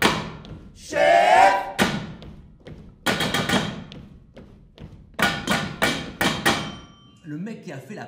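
Pots and kitchen utensils clatter and ring in sharp, rhythmic strikes.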